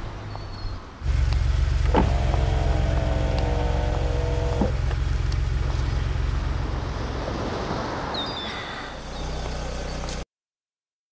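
A car engine rumbles steadily as the car drives along.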